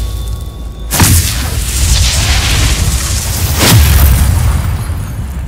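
A magic spell bursts with a loud whoosh and a shimmering hiss.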